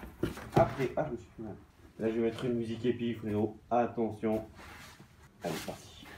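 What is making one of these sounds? Cardboard box flaps rustle and scrape as they open.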